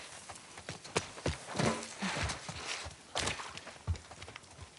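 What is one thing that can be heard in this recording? A person climbs over a wooden railing with a thud.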